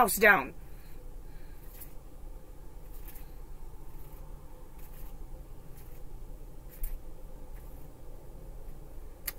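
Cards shuffle softly in a woman's hands.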